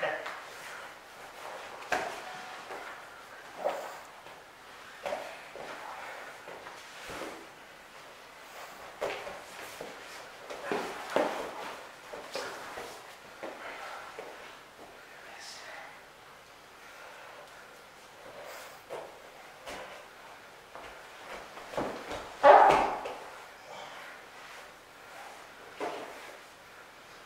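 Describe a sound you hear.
Bodies thump and slap on a padded mat.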